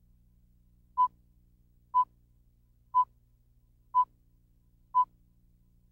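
A countdown tone beeps once each second.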